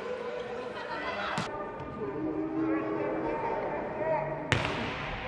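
Spectators cheer and shout in an echoing hall.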